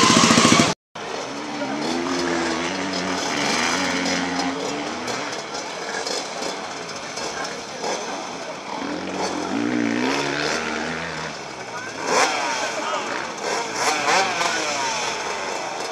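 Several motorcycle engines rev in the distance outdoors.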